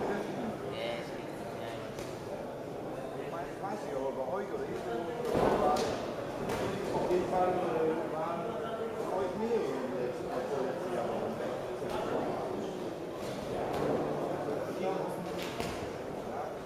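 A crowd talks and calls out in a large echoing hall.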